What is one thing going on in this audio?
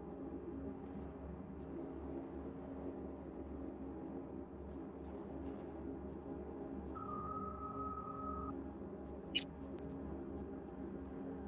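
Short digital interface clicks tick as a game menu is browsed.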